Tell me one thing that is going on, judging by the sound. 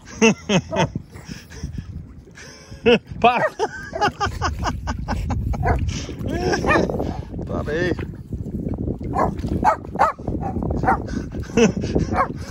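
Water splashes as a dog swims and paddles.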